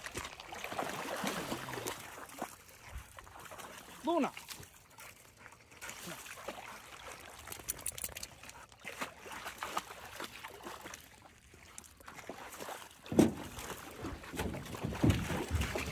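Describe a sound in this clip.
Water splashes as a large fish thrashes at the surface.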